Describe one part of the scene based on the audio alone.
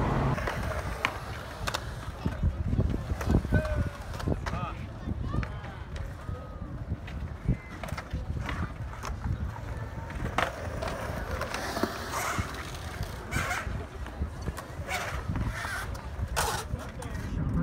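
Skateboards clack and knock on concrete.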